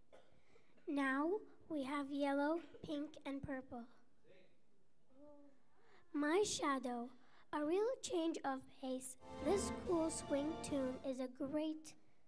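A choir of children sings together in a large hall.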